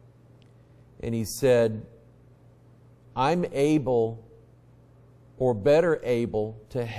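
A middle-aged man preaches with emphasis through a microphone, in short bursts with pauses.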